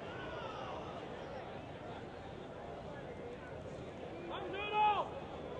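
A crowd of spectators murmurs.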